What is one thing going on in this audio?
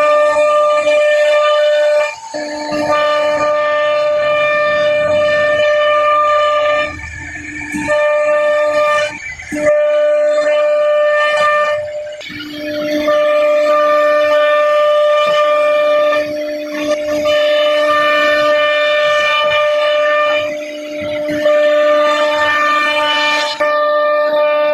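A router spindle whines loudly at a steady high pitch, rising and dipping as it cuts into wood.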